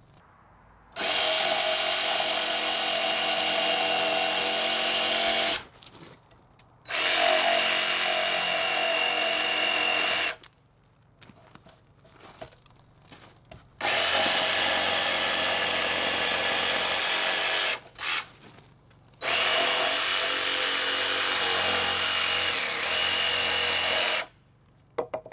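A circular saw whines loudly as it cuts through wood in several long bursts.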